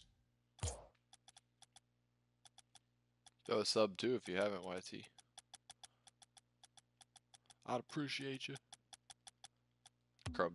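Soft menu clicks tick quickly as a selection moves through a list.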